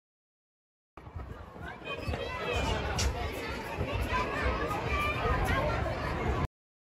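A crowd of children chatter and shout outdoors.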